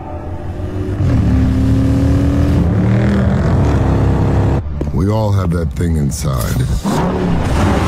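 A powerful car engine roars and revs.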